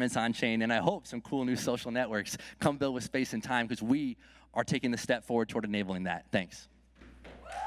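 A man speaks with animation through a microphone on a stage.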